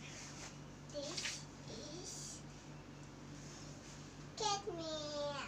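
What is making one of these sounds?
A young girl speaks up close in short, lively bursts.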